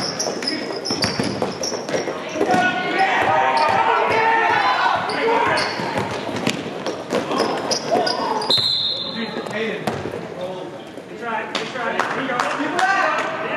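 Spectators and players shout and call out across a large echoing gym.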